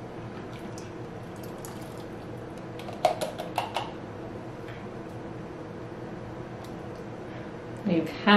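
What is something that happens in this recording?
Thick sauce pours and splatters through a funnel into a glass jar.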